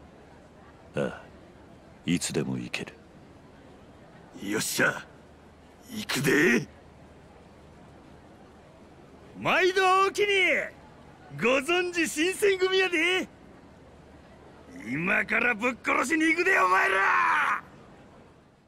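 A young man speaks loudly and with animation, calling out.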